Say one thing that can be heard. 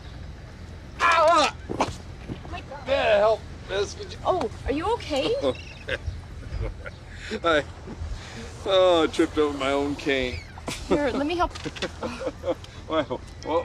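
A young woman talks with concern up close.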